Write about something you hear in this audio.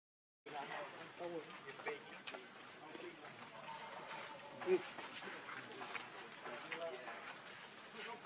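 A small monkey chews food with soft smacking sounds.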